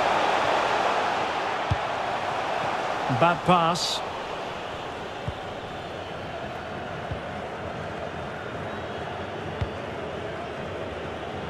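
A large stadium crowd murmurs and roars.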